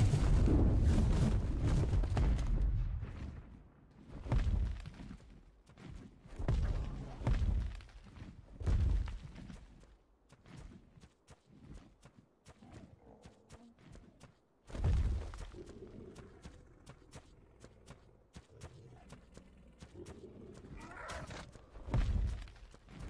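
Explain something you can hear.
Large wings beat with deep whooshing flaps.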